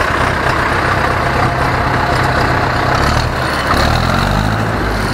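A tractor's engine revs up.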